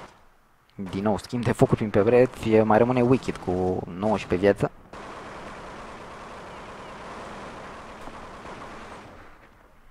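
Rifle gunfire rattles in short bursts.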